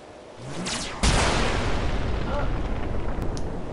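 A blast booms loudly.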